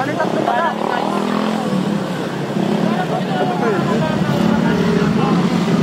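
Motorcycle engines hum as they ride past on a road.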